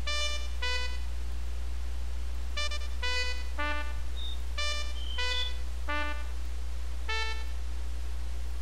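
A tune of short, bright piped notes plays, with pauses between them.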